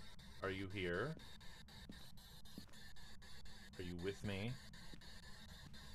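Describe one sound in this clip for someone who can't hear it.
A handheld radio hisses with static.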